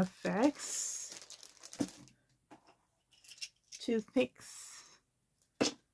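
A plastic bag crinkles in hands.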